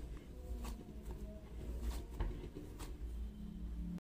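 Hands squeeze and knead soft dough.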